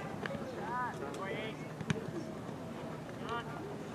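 A soccer ball is kicked with a thud.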